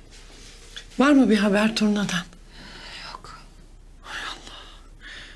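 A middle-aged woman answers in a distressed voice, close by.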